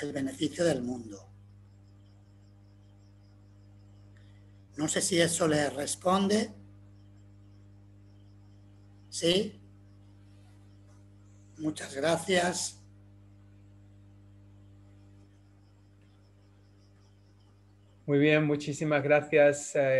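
An older man speaks calmly through an online call, in short bursts with pauses.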